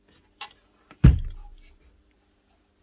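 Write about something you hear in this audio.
A heavy power tool is set down with a dull thud.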